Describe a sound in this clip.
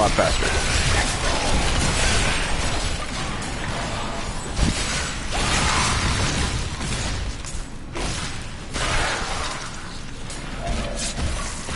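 Bones crack and shatter.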